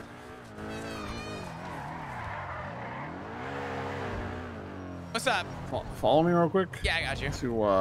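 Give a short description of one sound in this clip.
Tyres screech as a car skids and drifts.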